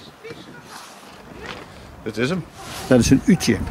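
A zipper opens on a fabric bag.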